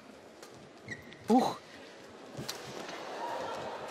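A player falls heavily onto the floor.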